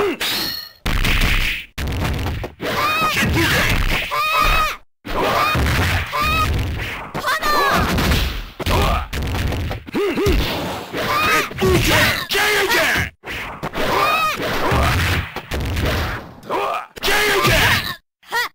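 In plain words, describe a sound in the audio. Special attacks burst with whooshing blasts.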